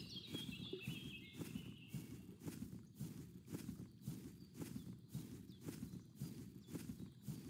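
Footsteps tread steadily over soft ground.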